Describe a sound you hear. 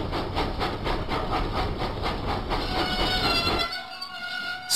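A steam engine chuffs steadily along the rails.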